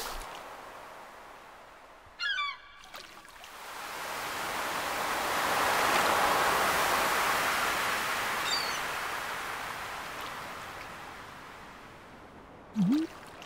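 Gentle waves wash and lap, swelling and fading.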